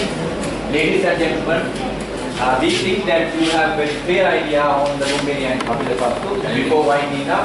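A man speaks to the room.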